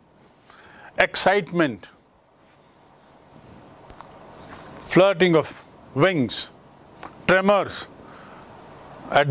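An older man speaks calmly and clearly into a close microphone.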